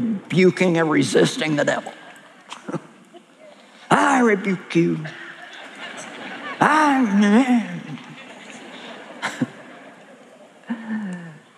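A middle-aged woman speaks with animation through a microphone in a large hall.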